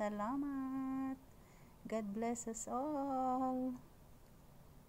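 A high-pitched puppet voice speaks with animation, close up.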